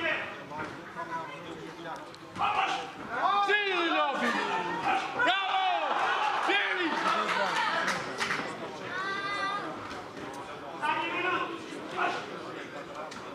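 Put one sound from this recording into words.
A crowd of spectators shouts and cheers loudly in a hall.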